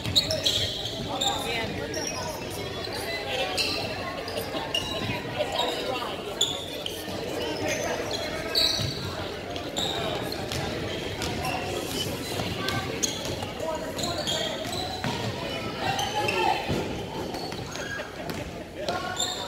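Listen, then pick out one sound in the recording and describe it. A crowd of spectators murmurs and cheers in a large echoing gym.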